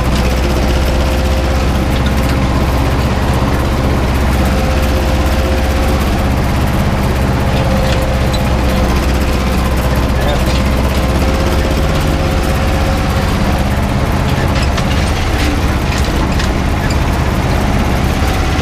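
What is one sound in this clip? A tractor engine drones loudly and steadily from inside the cab.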